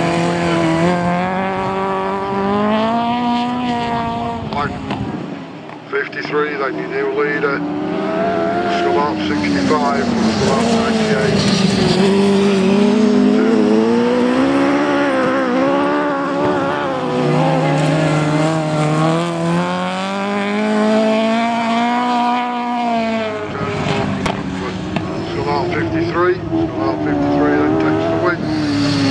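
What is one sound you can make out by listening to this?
Racing car engines roar and rev as they speed around a dirt track.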